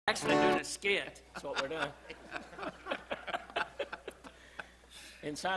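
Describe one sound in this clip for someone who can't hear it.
Elderly men laugh nearby.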